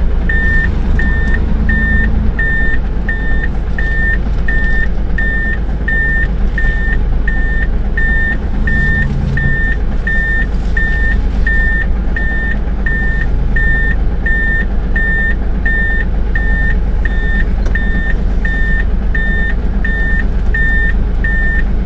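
A warning beeper in the truck cab beeps steadily and rapidly.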